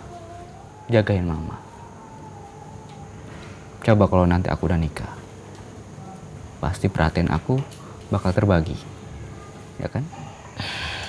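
A man speaks earnestly and close by.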